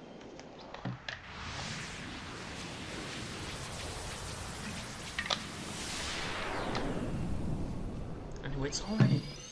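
A bright whooshing swell rises and fades.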